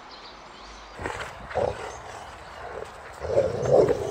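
A dog barks and huffs close by.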